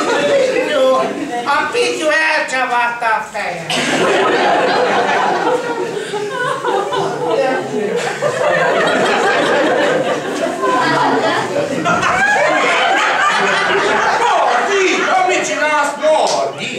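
An audience laughs and chatters in a small room.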